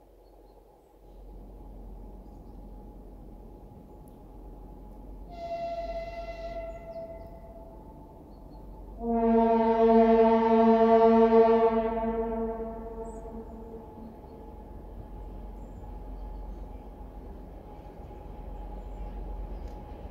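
A train rumbles steadily as it approaches along the tracks.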